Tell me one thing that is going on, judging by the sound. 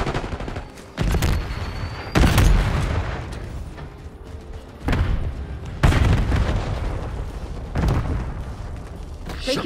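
A gun fires in loud bursts.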